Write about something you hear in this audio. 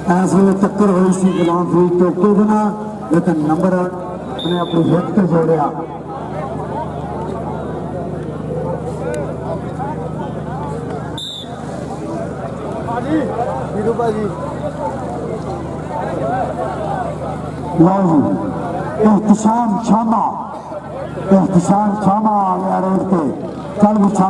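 A man commentates loudly and with animation over a loudspeaker.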